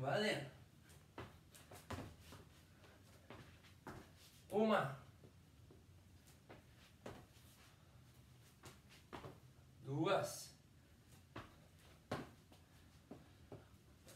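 Shoes thump on a hard floor as a man jumps and lands.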